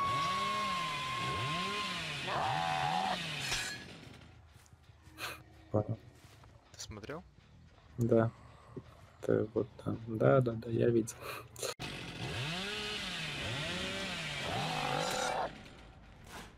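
A chainsaw engine revs up and down loudly.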